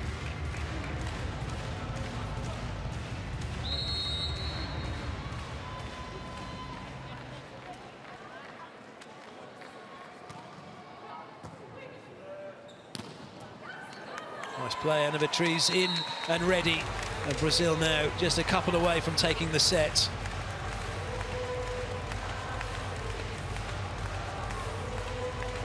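A crowd cheers and murmurs in a large echoing hall.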